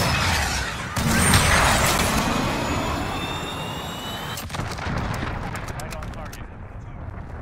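A huge explosion booms and rumbles.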